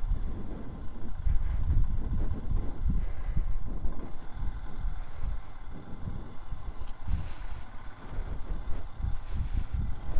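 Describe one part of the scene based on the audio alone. A motorcycle engine rumbles at low speed.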